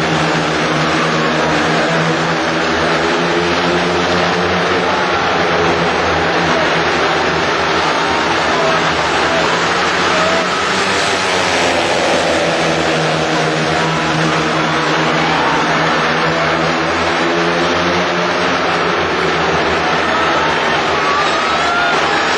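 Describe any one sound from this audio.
Speedway motorcycle engines roar and whine as they race around a track.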